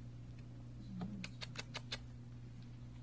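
A kitten's claws scratch and scrape at a rough surface.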